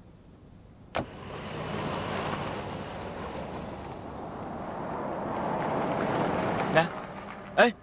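A car drives past nearby.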